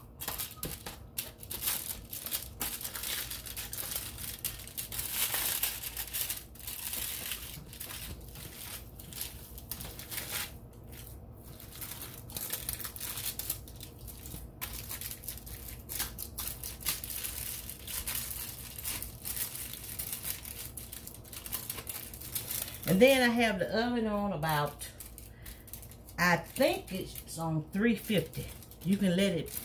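Hands squish and knead soft ground meat with wet, sticky sounds.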